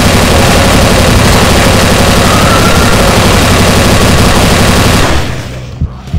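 A rapid-fire gun blasts in a fast, loud stream of shots.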